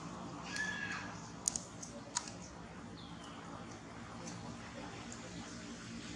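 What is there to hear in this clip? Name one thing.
A baby monkey chews and gnaws on food.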